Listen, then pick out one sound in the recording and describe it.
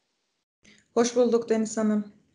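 A young woman speaks calmly over an online call.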